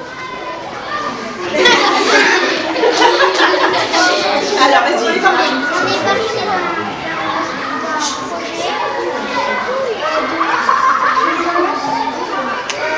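Many children chatter and call out at once in an echoing hall.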